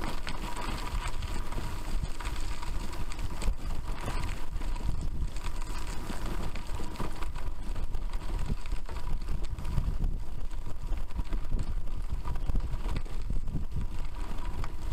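Bicycle tyres crunch and rattle over a rough dirt track.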